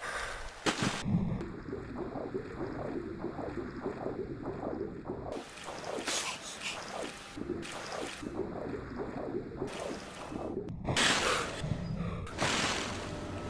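Swimming strokes churn muffled underwater.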